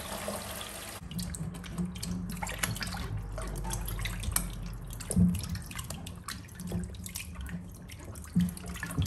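Hands splash and rub vegetables in water.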